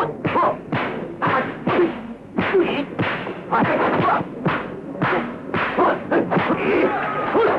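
Punches and kicks land with sharp, quick smacks.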